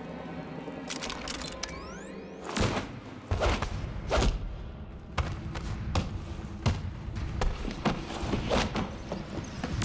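Blows and thuds land in a scuffle.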